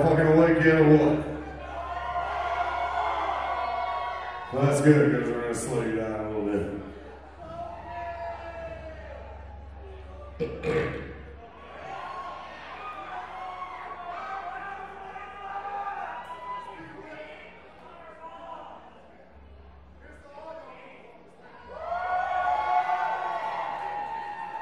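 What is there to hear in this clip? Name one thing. A band plays electric guitars through loud amplifiers.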